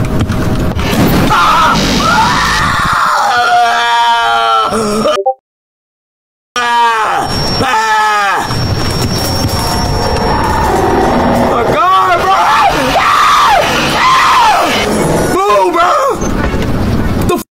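A young man screams and yells loudly into a close microphone.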